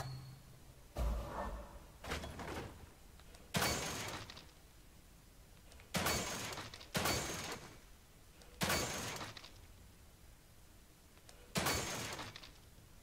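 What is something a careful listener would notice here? Gunshots fire in sharp bursts, echoing briefly.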